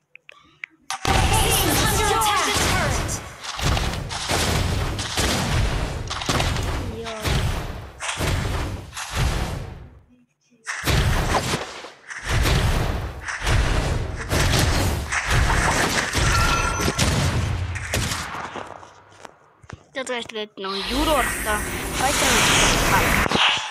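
Battle sound effects clash and boom.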